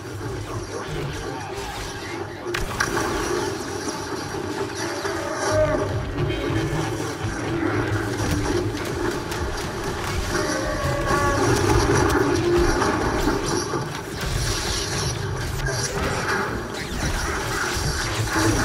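A double-bladed lightsaber hums and whooshes as it is swung.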